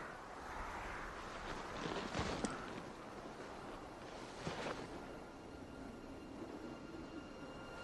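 A man sobs and breathes heavily up close.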